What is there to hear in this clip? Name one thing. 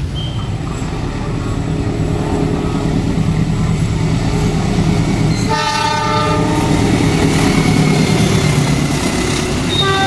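A diesel locomotive engine rumbles as it approaches.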